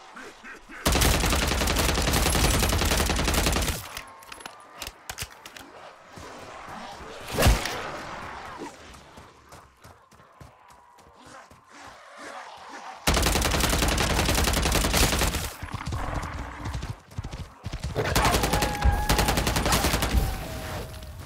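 A rapid-fire gun fires long bursts of loud shots.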